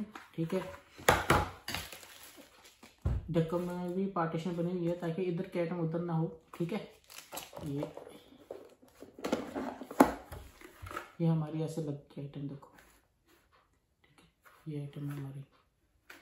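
A plastic tray clatters and rattles in hands.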